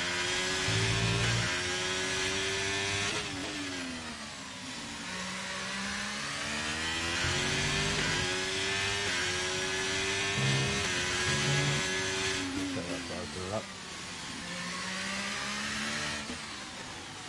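A racing car engine whines loudly, rising and falling in pitch as the gears shift.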